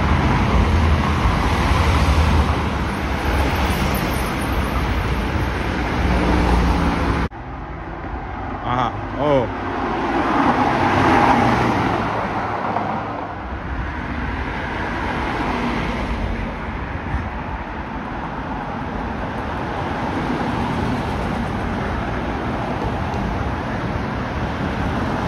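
Tyres hiss on asphalt as cars pass.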